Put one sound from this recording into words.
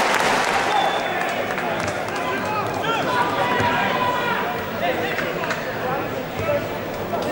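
Men shout to each other across an open pitch.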